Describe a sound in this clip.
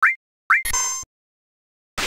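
Short electronic beeps chirp.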